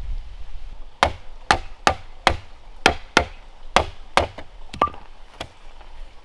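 A wooden block knocks sharply on bamboo poles in quick blows.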